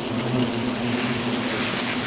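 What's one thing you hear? Wasps buzz close by.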